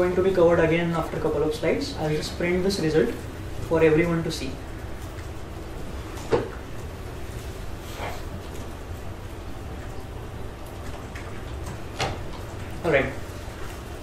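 A man speaks calmly through a microphone in a large room, pausing between phrases.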